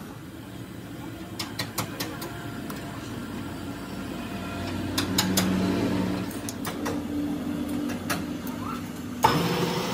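Metal tools click and clink together.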